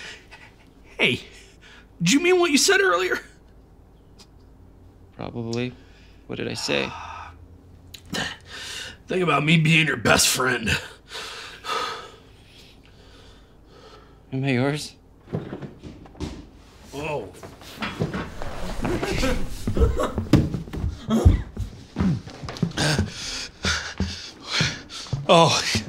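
A man talks nearby, in short bursts.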